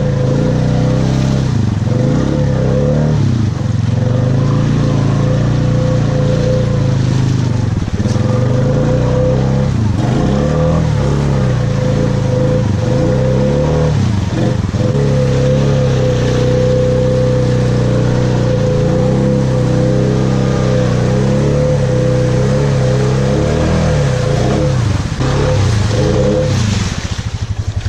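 An all-terrain vehicle's engine roars close by, revving up and down.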